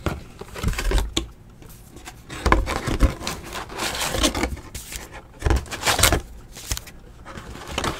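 A cardboard box lid scrapes and flaps open.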